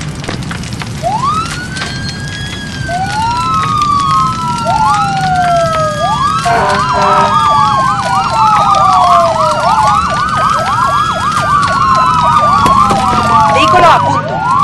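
Several emergency sirens wail, rising and falling and overlapping.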